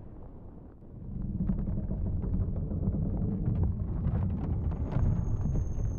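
A deep watery rumble surges around a moving boat.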